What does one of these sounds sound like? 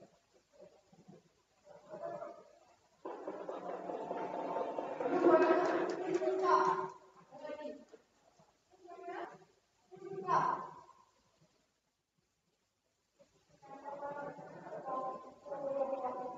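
A man speaks through a microphone, heard over loudspeakers in an echoing hall.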